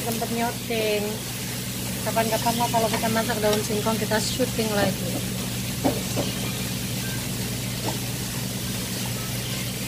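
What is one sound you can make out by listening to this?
A spatula scrapes and clatters against a metal pan.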